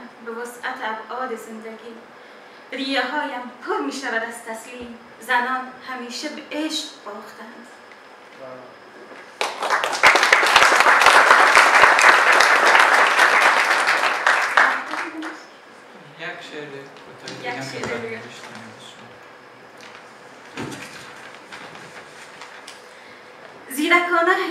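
A woman reads aloud calmly into a microphone in a large hall.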